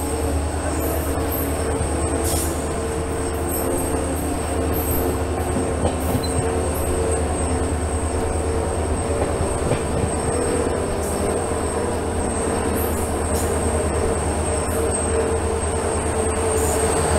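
A diesel locomotive engine hums loudly close by.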